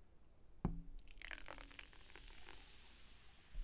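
Fizzy drink pours and fizzes from a can.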